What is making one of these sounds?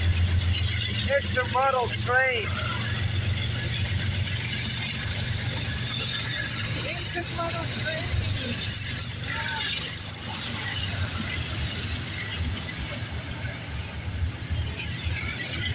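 A freight train rumbles and clatters steadily past up close.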